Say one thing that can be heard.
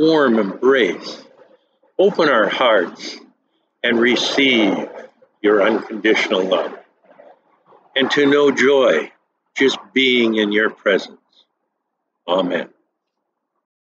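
An elderly man speaks calmly and close up.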